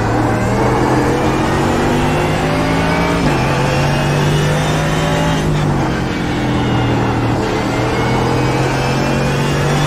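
A race car engine roars loudly and steadily, its pitch climbing and dropping sharply as gears change.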